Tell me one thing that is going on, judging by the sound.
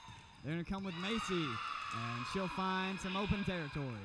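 A volleyball is hit back and forth in a large echoing gym.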